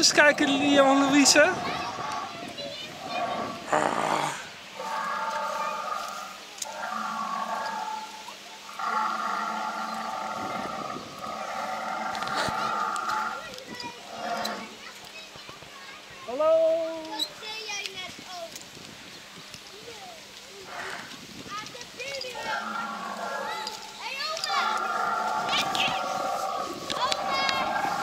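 A mechanical dinosaur roars and growls loudly through a loudspeaker.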